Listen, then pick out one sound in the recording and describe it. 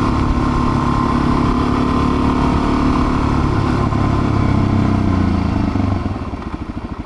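A single-cylinder dual-sport motorcycle rides along under throttle.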